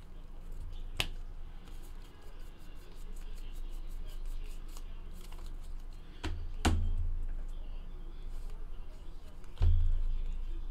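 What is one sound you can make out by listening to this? A card taps down on a table.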